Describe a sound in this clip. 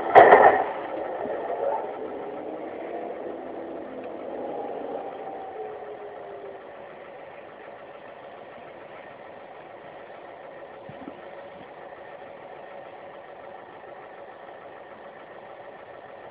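A tram's electric motor hums steadily as it rolls along.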